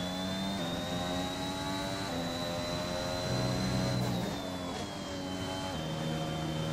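A Formula One car's engine drops and rises in pitch as it shifts gears.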